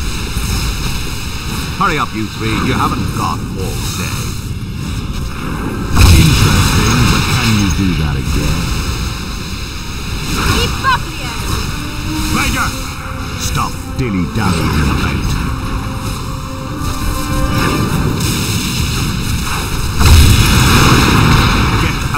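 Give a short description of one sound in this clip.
Magic spells whoosh and burst with loud crackling blasts.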